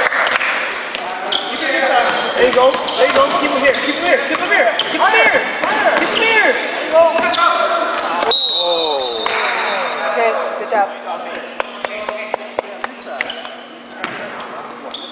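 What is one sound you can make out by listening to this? A basketball bounces with dull thuds on the floor.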